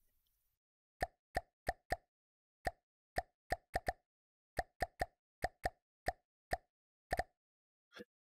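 Keys clack quickly on a computer keyboard.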